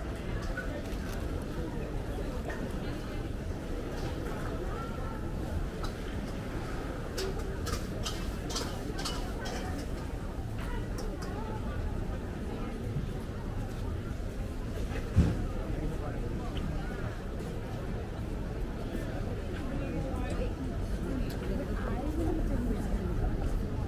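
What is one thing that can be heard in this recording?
A crowd of people chatters outdoors all around.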